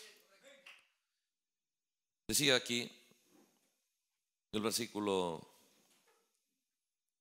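A middle-aged man speaks loudly through a microphone in a reverberant hall, in short emphatic bursts.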